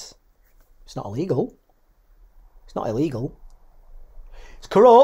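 A middle-aged man speaks calmly and close by, heard through an online call.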